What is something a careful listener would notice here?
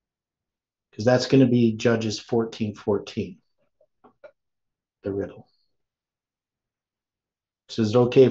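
An older man speaks calmly and close to a microphone, as if on an online call.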